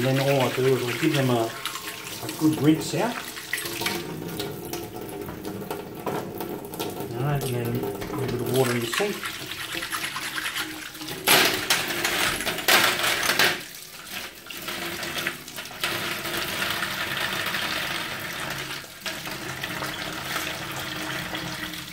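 Water runs from a tap and splashes into a metal sink.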